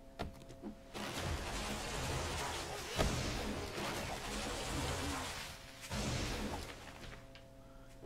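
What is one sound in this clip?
Leafy branches rustle and swish.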